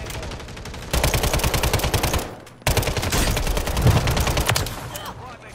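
Rapid gunfire rattles loudly in two bursts.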